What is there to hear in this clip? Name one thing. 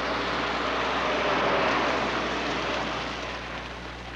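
A vehicle engine rumbles as it approaches.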